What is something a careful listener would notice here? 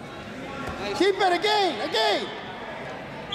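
A man in the crowd shouts loudly several times in a large echoing hall.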